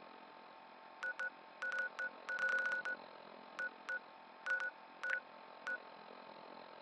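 Short electronic beeps chirp in quick bursts.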